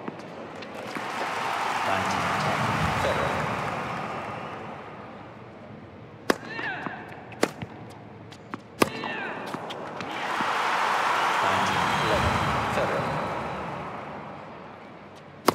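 A crowd cheers and applauds in an indoor arena.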